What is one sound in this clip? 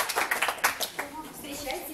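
A woman speaks calmly to a room.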